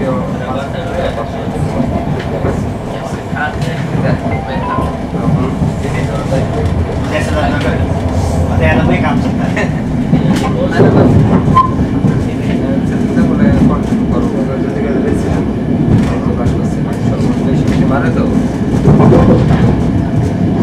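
Train wheels clatter and click on the rails.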